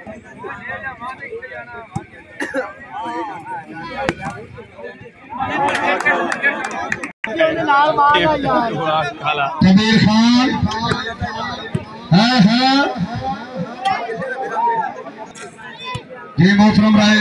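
A large outdoor crowd chatters and cheers throughout.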